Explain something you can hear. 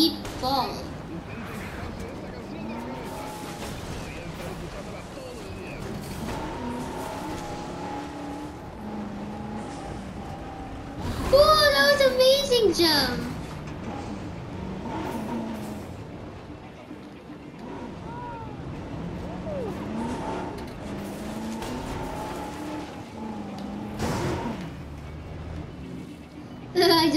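A jeep engine hums as it drives over grass.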